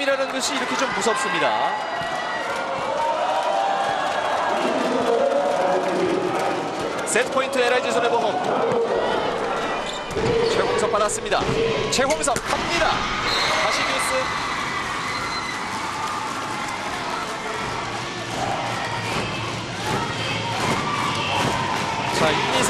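A crowd cheers and chants loudly in a large echoing hall.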